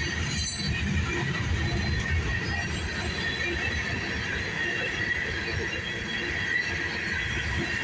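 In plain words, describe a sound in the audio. Steel wheels squeal faintly against the rails.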